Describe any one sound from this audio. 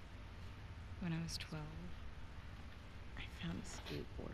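A young woman speaks softly and close.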